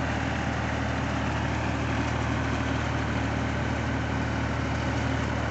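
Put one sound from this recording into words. A tractor engine runs with a steady loud rumble.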